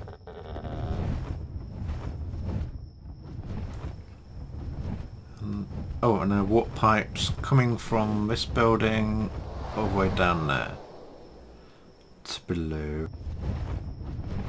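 Large wings beat steadily.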